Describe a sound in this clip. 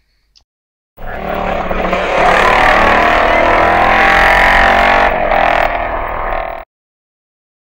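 A racing motorcycle engine roars loudly at high revs as the motorcycle passes.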